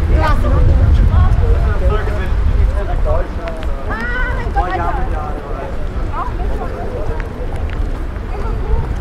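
Wind rumbles across an open outdoor space.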